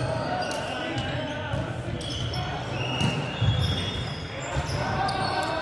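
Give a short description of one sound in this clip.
Players' shoes squeak on a hard court in a large echoing hall.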